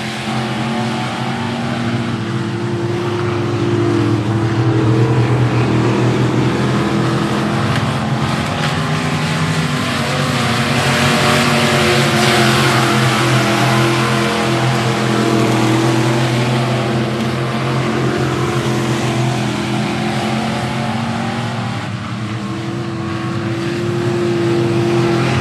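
Several race car engines roar steadily, growing louder as cars pass close by.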